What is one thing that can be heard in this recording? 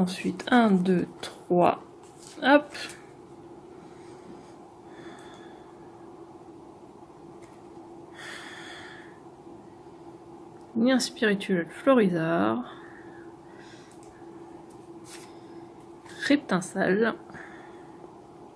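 Trading cards rustle and slide softly against each other as they are shuffled.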